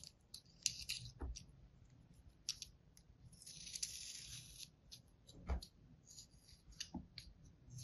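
A small blade scrapes and scratches through soft sand.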